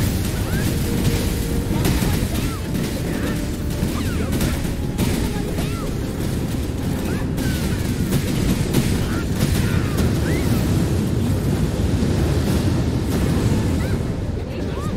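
Spell blasts and weapon hits crash and boom in quick succession.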